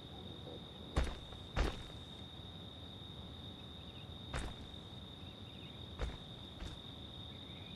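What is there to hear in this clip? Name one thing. Heavy footsteps thud slowly on a dirt path.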